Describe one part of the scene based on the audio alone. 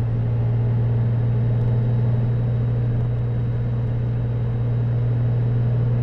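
A coach roars past close by.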